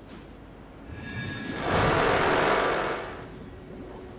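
A magical shimmering sound swells and then stops.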